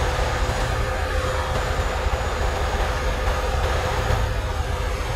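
A truck engine drones steadily with a low rumble.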